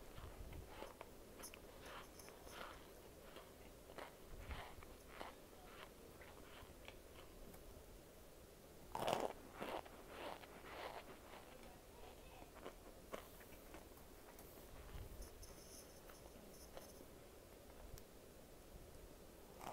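Fingers rustle and crunch through a light, crumbly food in a plastic bowl.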